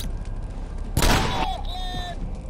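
A rifle shot cracks loudly once.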